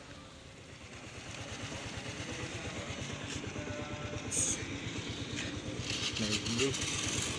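A motorbike engine idles and rumbles.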